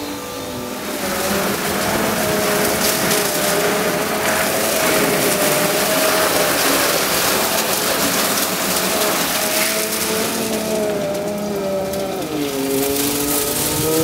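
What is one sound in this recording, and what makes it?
Water sprays loudly against a vehicle's side.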